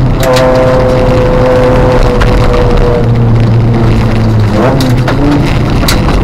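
Windscreen wipers swish across wet glass.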